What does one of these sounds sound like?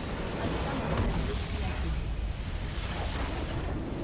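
A structure explodes with a loud burst.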